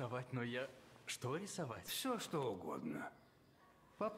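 An elderly man speaks warmly and close by.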